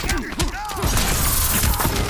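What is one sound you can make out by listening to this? An energy blast bursts with a crackling boom.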